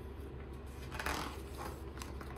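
A book page rustles as it turns.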